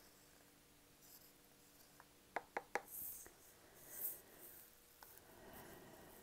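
A brush scrapes wet paint out of a plastic cup.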